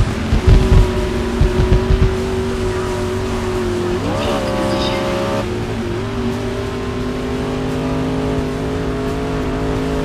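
A race car engine roars at high revs, briefly climbing in pitch as it shifts.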